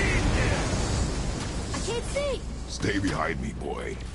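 Lightning crackles and zaps.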